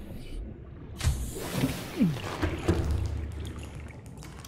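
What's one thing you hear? A heavy hatch opens with a loud mechanical whoosh and clunk.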